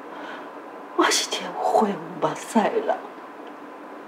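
A woman speaks emotionally and close by.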